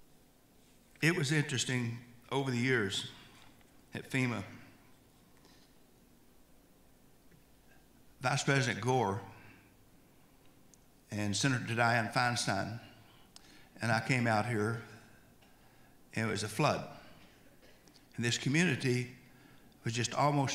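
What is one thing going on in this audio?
An older man speaks calmly into a microphone over a loudspeaker, pausing between phrases.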